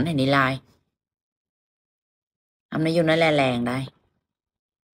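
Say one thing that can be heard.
A woman speaks with animation, heard through a phone call.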